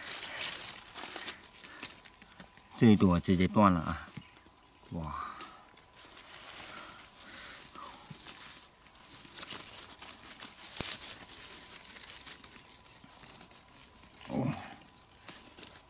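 Dry leaves and stalks rustle close by.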